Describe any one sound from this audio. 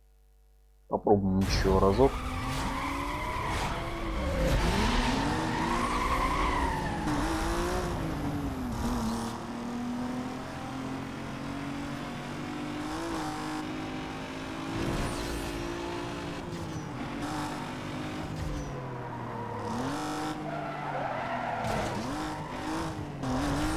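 A car engine revs hard and roars as it accelerates, rising and falling in pitch through gear changes.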